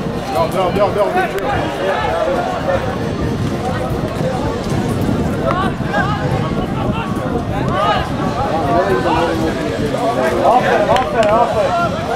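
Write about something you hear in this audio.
Men talk and call out loudly nearby, outdoors.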